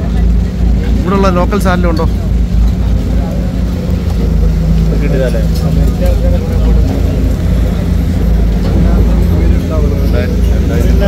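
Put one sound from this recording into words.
Several men talk close by, outdoors.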